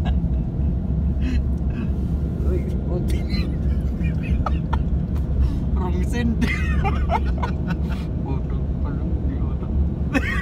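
Road noise rumbles steadily from inside a moving car.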